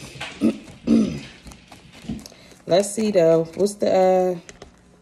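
A young woman speaks close by, with animation.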